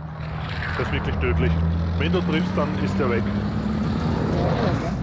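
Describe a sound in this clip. A large aircraft's engines drone low and steady.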